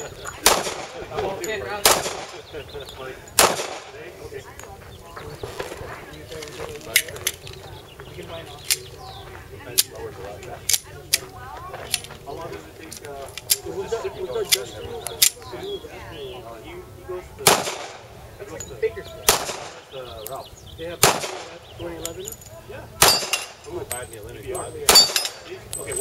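Pistol shots crack loudly outdoors, one at a time with short pauses.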